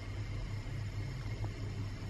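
A gas flame hisses softly.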